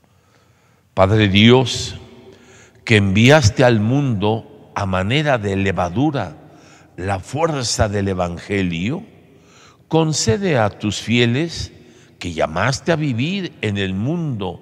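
An elderly man sings a chant through a microphone in a large echoing room.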